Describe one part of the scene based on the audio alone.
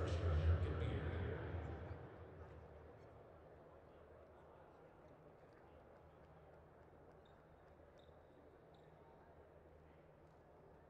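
A crowd cheers in a large echoing arena and fades to a low murmur.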